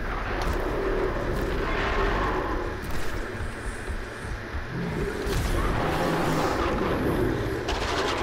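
A bowstring twangs as arrows fly.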